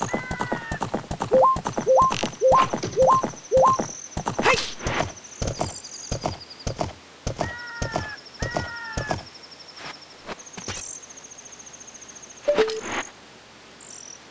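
An arrow whooshes off a bowstring.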